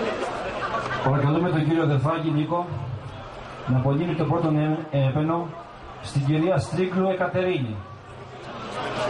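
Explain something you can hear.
A man speaks loudly into a microphone, heard through loudspeakers.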